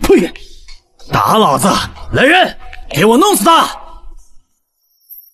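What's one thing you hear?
A young woman speaks sharply and angrily.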